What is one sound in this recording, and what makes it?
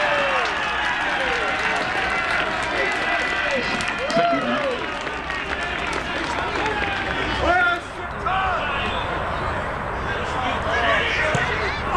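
A small crowd of spectators cheers and shouts outdoors.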